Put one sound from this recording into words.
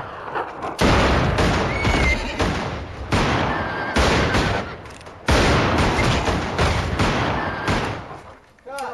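Guns fire loud shots outdoors.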